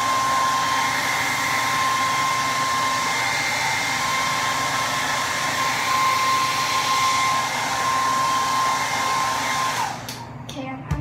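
A hair dryer blows with a loud, steady whine, then switches off.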